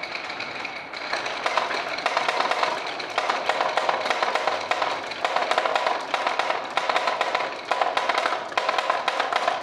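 Glass marbles click against each other as they pile up.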